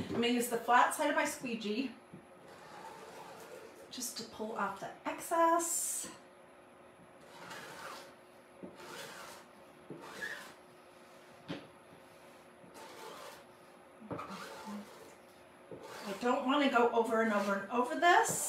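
A sponge dabs paint onto a board with soft taps.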